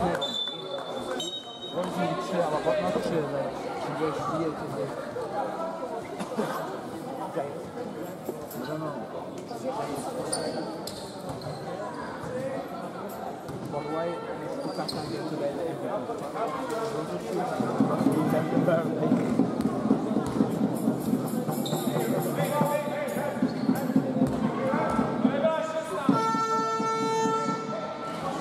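A crowd chatters and calls out in an echoing indoor hall.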